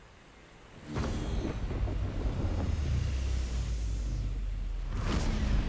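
A glowing blade hums with a low electric buzz.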